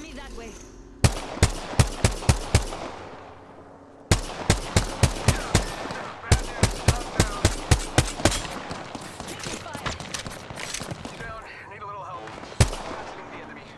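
A rifle fires rapid bursts of loud, sharp shots.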